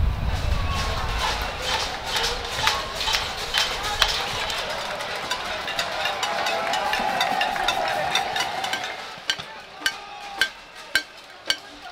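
A large crowd murmurs and shouts outdoors.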